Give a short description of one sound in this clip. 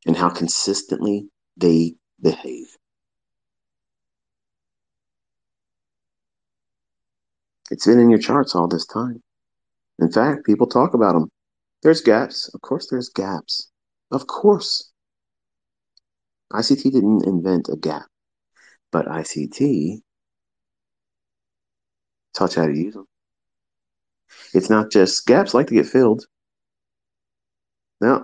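A man speaks calmly, with pauses between phrases.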